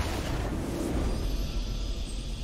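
A triumphant fanfare plays.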